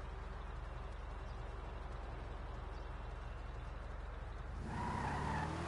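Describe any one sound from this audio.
A car engine rumbles low and steady at idle.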